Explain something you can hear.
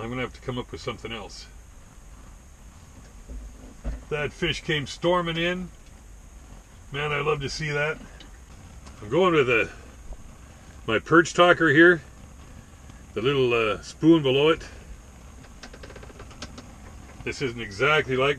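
An older man talks calmly and close by, in short bursts with pauses.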